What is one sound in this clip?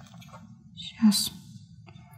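A small metal tip clicks against a hard surface.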